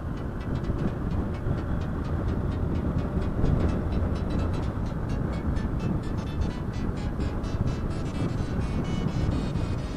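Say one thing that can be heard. Wind rumbles loudly against a moving vehicle.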